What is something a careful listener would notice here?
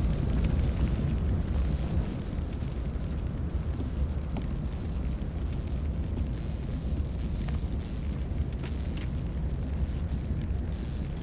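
A fire burns with a low, steady roar.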